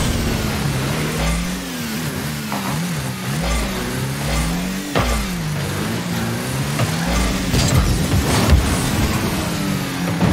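A game car's engine hums and whines, rising and falling in pitch.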